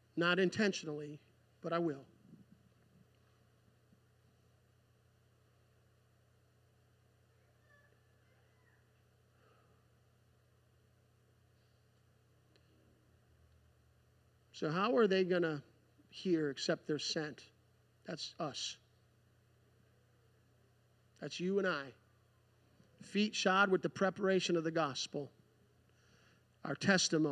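A man speaks into a microphone over loudspeakers in a large hall, in short bursts with pauses.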